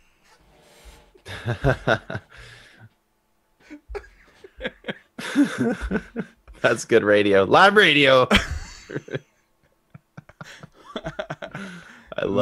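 Two men laugh heartily.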